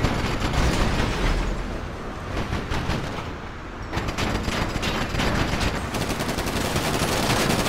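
A car engine roars.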